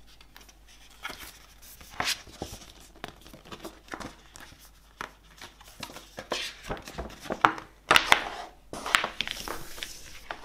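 A glossy paper poster crinkles and rustles as it is unfolded.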